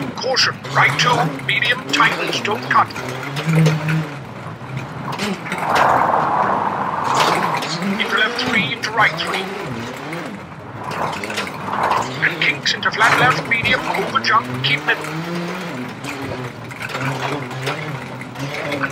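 A rally car engine revs hard and shifts gears.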